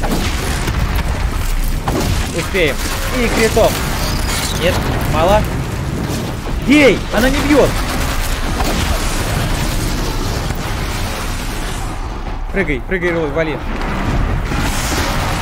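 Explosions and fire roar in a game's battle.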